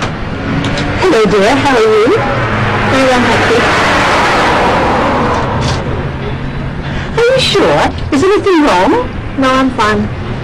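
An elderly woman speaks calmly nearby.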